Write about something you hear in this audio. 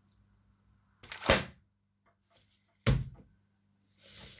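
A large book thumps open on a table.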